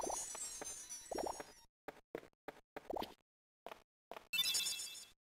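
Quick whooshing strike effects play in bursts.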